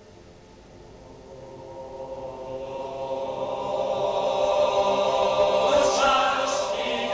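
A mixed choir of men and women sings together in a large echoing hall, swelling louder.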